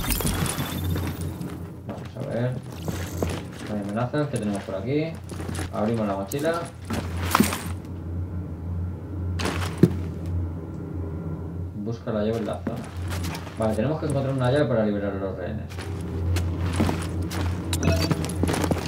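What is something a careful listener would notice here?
Footsteps walk across a hard floor scattered with debris.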